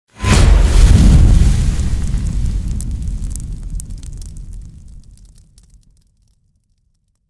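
Flames roar and crackle, then slowly die away.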